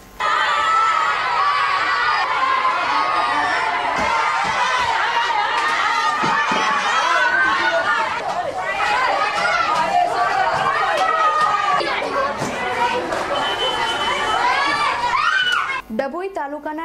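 A crowd of women and children shout and chatter loudly.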